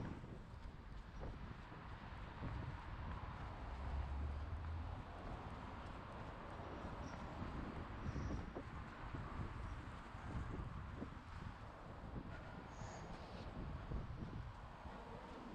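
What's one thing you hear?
Footsteps tap on a paved pavement.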